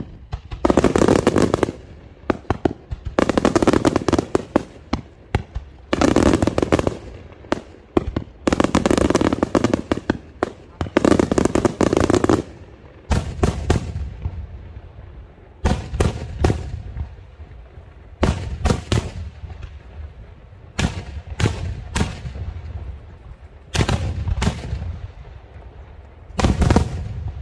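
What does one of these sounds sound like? Fireworks explode overhead with loud, repeated bangs.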